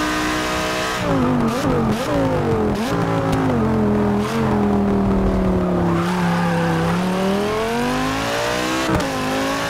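A racing car engine winds down as the car brakes, then revs back up.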